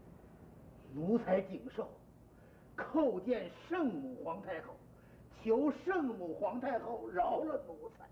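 An elderly man speaks formally and loudly, close by.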